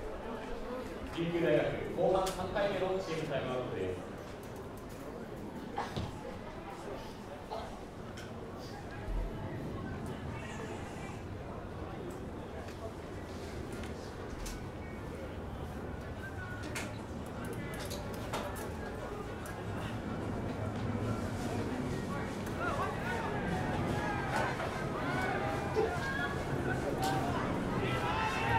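A crowd of spectators murmurs and calls out outdoors.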